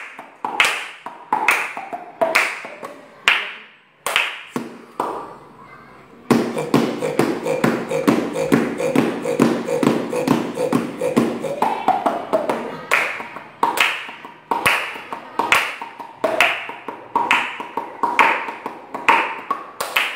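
A young boy makes rhythmic vocal sounds close by.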